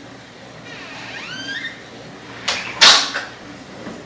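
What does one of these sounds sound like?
A door closes with a thud.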